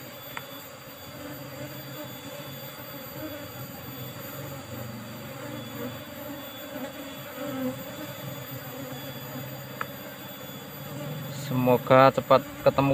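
Bees buzz in a dense, steady hum close by.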